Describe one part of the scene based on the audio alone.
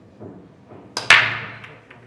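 A cue strikes a ball with a sharp crack.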